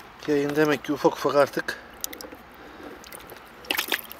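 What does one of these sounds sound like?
Plastic rustles and knocks as a hand reaches into a bucket.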